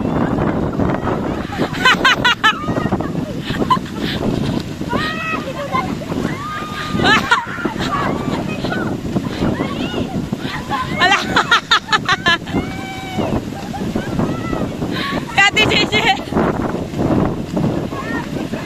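Young women shout and shriek with excitement.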